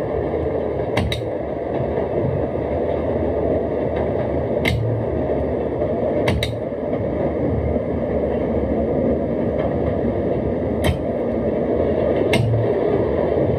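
Train wheels click now and then over rail joints.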